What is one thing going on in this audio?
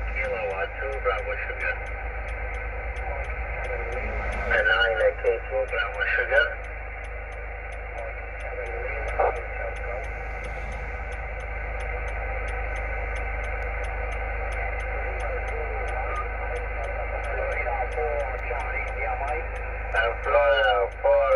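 A radio hisses with steady static through its loudspeaker.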